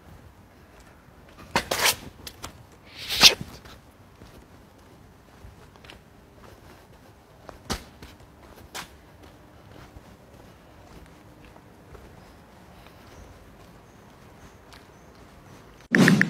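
Footsteps walk on cobblestones outdoors.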